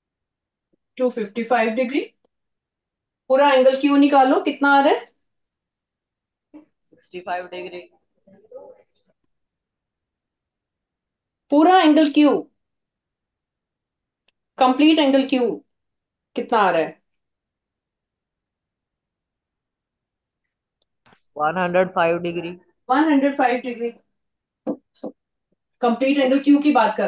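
A woman lectures through a microphone, speaking calmly in short bursts.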